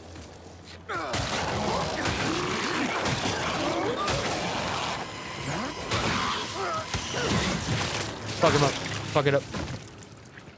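A creature shrieks and snarls.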